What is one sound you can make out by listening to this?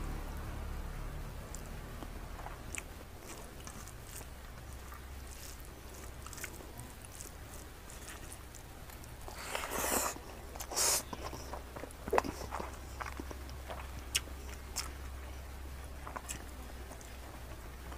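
Fingers squish and mix moist rice close up.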